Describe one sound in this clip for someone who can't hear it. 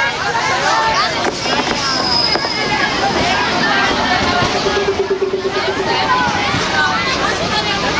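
A diesel train rumbles as it pulls into a station.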